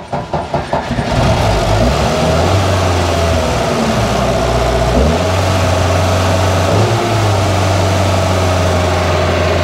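An engine starts and runs with a steady rumble.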